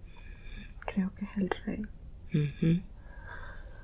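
A woman groans and murmurs drowsily close by.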